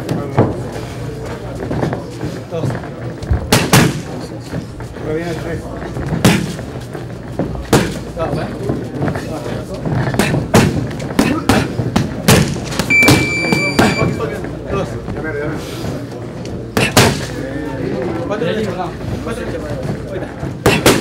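Boxing gloves smack against punch mitts in quick bursts.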